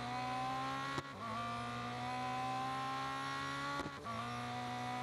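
A racing car engine jumps in pitch with each gear change.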